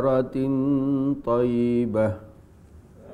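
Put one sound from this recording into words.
A man chants a recitation in a melodic voice through a microphone.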